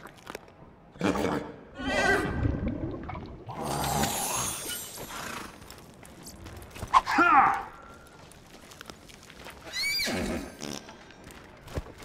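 A horse whinnies and snorts nearby.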